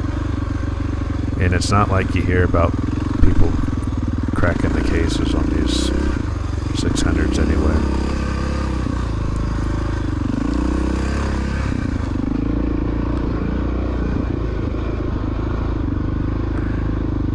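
A dirt bike engine drones and revs up close.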